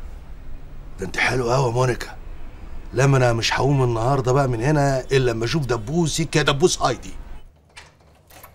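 A middle-aged man talks with animation into a headset microphone.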